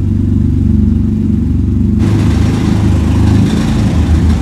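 A small car engine idles with a deep, rumbling exhaust.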